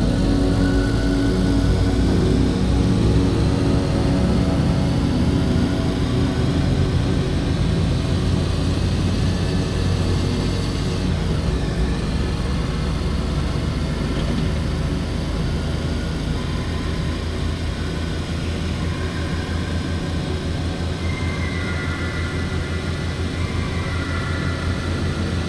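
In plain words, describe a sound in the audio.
A car engine drones steadily and climbs in pitch as the car speeds up.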